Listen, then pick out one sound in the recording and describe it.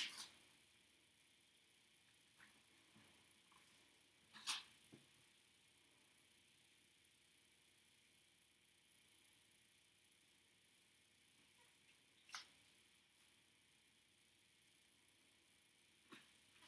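A comb scrapes softly through short hair.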